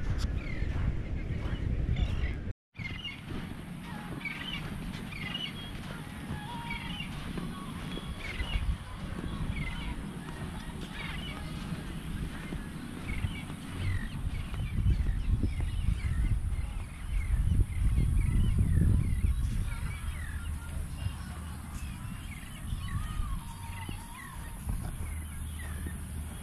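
Wind blows across an open outdoor space.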